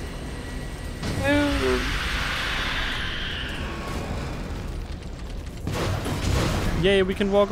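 Small explosions boom and rumble.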